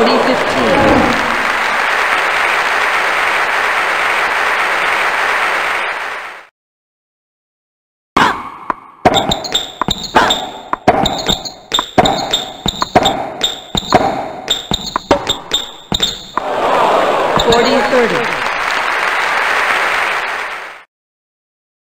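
A crowd cheers and applauds loudly.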